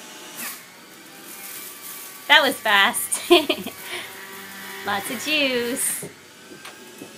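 Vegetables grind and crunch inside a juicer.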